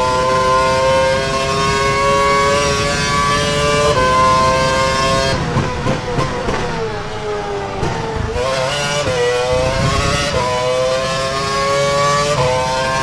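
A racing car engine screams at high revs, dropping and climbing through the gears.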